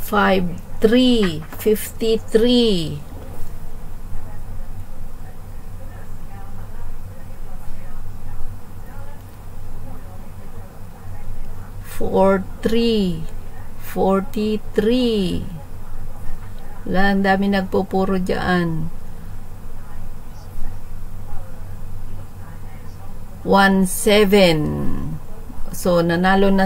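A middle-aged woman calls out in a lilting, sing-song voice through a webcam microphone.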